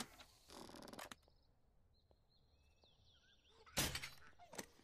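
A crossbow fires with a sharp twang.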